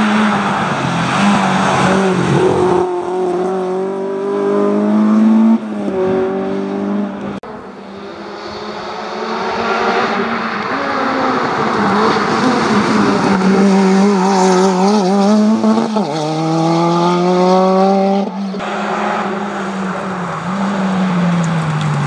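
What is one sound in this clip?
A rally car engine revs hard and roars past at speed.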